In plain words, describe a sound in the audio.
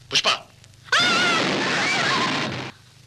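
A woman cries out loudly.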